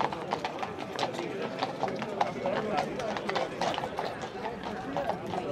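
Horse hooves clop on cobblestones.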